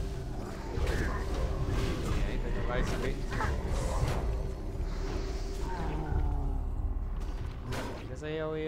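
Weapons clash and thud in a game fight.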